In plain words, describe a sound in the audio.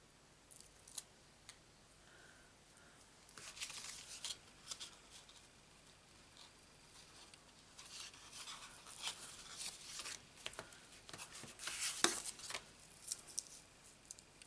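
Stiff cards tap and knock on a table.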